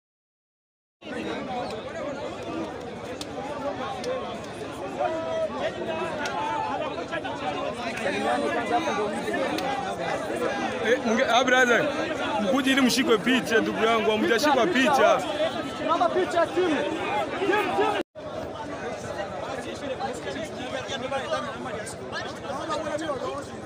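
A crowd of men chatters outdoors.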